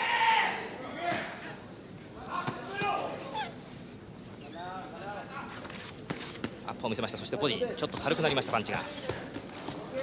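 Boxing gloves thud against bodies in quick punches.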